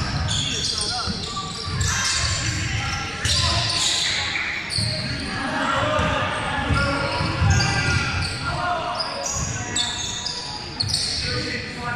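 Young men call out to each other across a large echoing hall.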